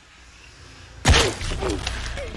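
An arrow is loosed from a bow with a sharp twang.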